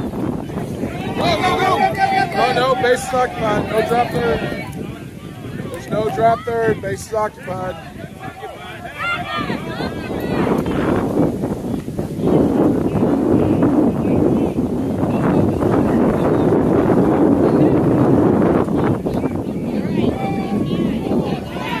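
Spectators cheer and shout close by outdoors.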